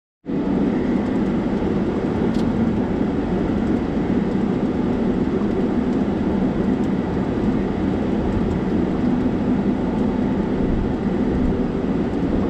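A car engine hums steadily from inside the cabin as it drives slowly.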